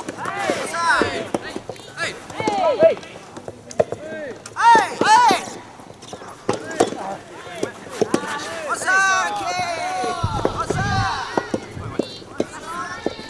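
Young men shout across an outdoor court.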